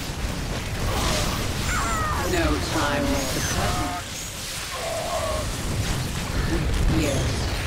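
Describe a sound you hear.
Electric bolts crackle and zap.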